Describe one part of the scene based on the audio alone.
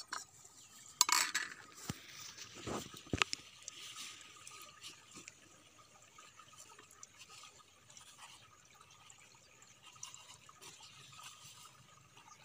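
Cloth rustles as it is folded.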